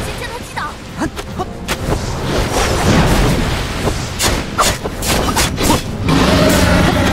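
Sword strikes clash and ring out sharply.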